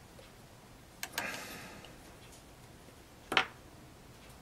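A plastic stand clicks and knocks as it is adjusted.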